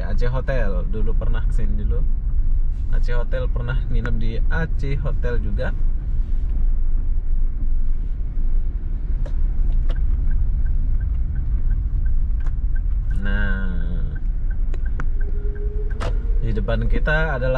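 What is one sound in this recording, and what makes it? A car engine hums steadily as tyres roll over the road.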